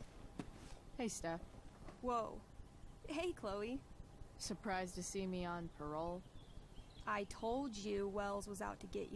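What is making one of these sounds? A young woman speaks casually up close.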